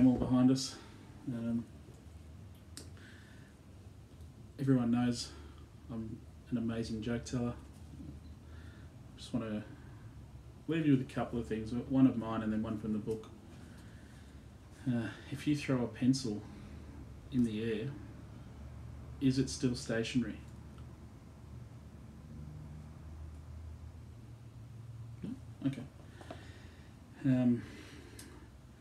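A middle-aged man talks calmly and close by, with pauses.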